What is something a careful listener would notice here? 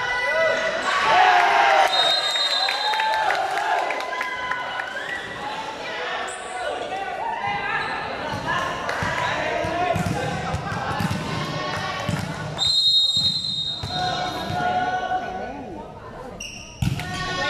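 Young people shout and cheer in a large echoing hall.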